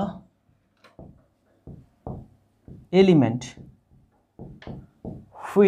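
A young man speaks clearly and steadily, close to a microphone.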